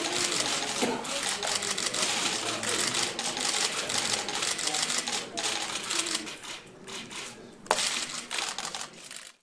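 A crowd of people murmurs and chatters in a large room.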